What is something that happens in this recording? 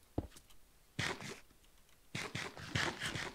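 Loud crunching bites of food come in quick bursts.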